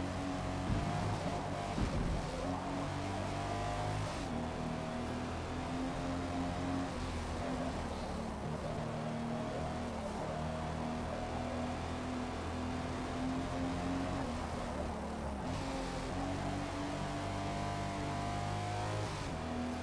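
A car engine roars steadily at high revs, dropping and rising as gears shift.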